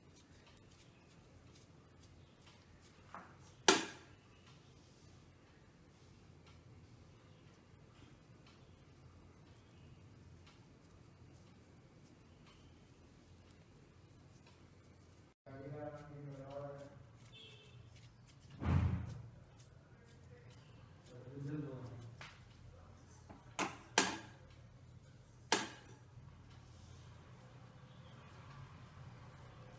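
Hands pat and press soft dough.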